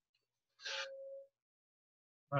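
A marker squeaks on a whiteboard.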